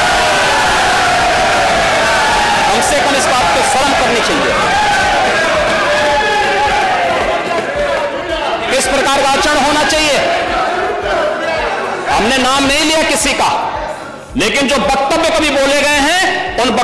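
A middle-aged man speaks forcefully into a microphone in a large hall.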